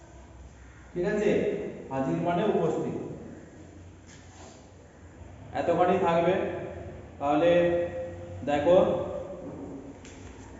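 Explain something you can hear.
A man speaks loudly and clearly, close by.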